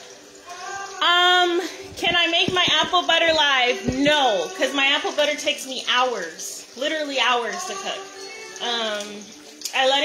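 A young woman speaks close up with animation.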